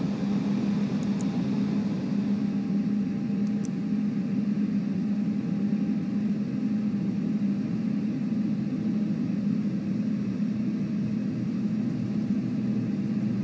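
Jet engines drone steadily at a low idle.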